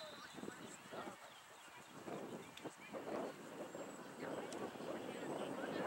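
Young women and spectators shout and call out across an open field, heard from a distance.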